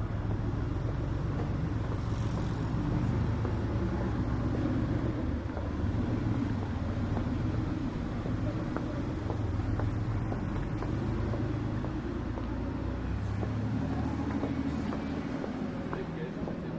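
Footsteps tap on a pavement close by.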